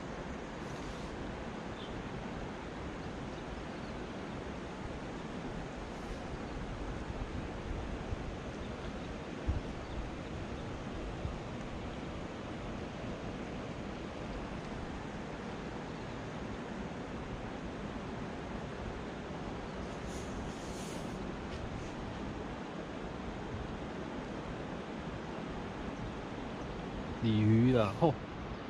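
A shallow river flows and ripples steadily over stones.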